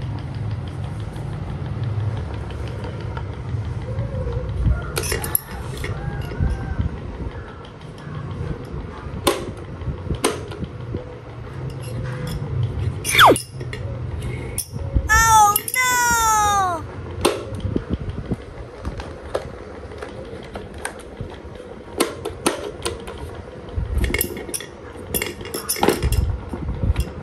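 Electric fans whir steadily with a low hum.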